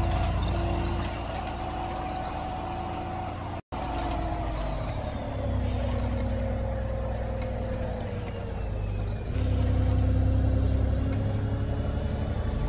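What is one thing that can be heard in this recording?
A bus engine hums steadily and rises and falls in pitch as the bus drives along.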